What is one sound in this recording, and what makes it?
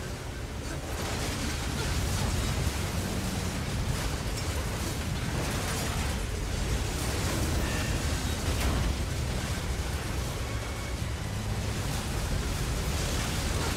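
Explosions boom and rumble repeatedly.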